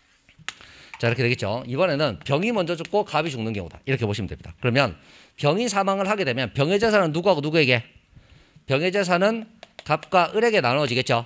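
A man lectures with animation, close to a microphone.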